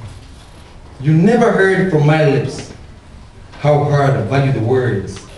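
A young man speaks formally into a microphone, heard through a loudspeaker in an echoing room.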